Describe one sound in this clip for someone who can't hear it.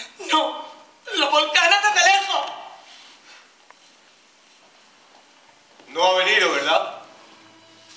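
A young woman cries out emotionally.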